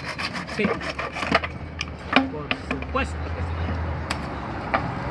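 A hand saw rasps through a plastic pipe.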